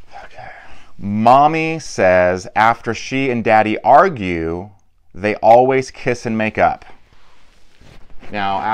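A man reads aloud expressively, close to a microphone.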